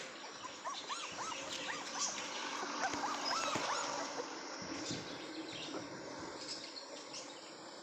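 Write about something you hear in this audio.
Puppies whimper and squeak close by.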